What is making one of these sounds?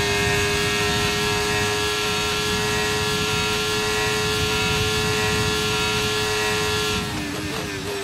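A racing car engine screams at high revs.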